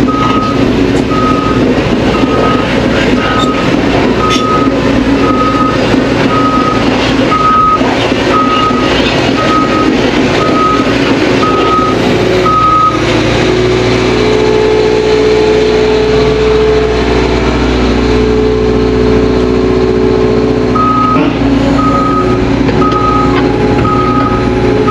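A heavy excavator engine rumbles steadily from inside the cab.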